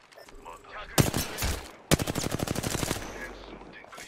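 A rifle fires loud, rapid shots.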